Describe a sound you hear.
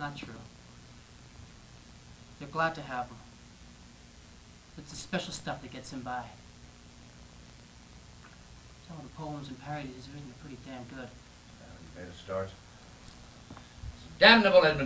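A man speaks with pauses between phrases, heard at a distance in a room.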